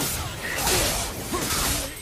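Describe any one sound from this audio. Flames whoosh and roar.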